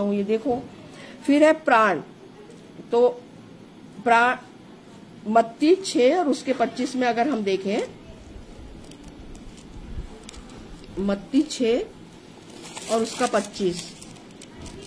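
An elderly woman speaks calmly and close by, in short phrases with pauses.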